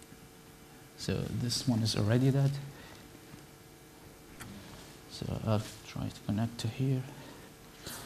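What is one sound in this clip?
A man speaks calmly through a microphone in a hall.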